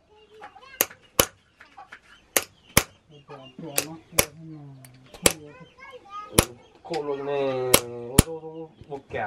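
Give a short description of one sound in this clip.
A hammer taps sharply on a metal chisel, again and again.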